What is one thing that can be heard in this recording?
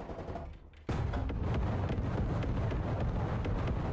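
A shell explodes with a loud bang.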